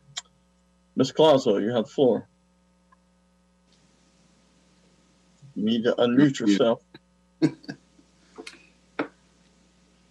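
An older man speaks calmly through an online call.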